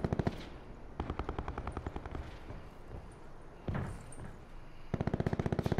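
A helicopter's rotor thumps and roars steadily overhead.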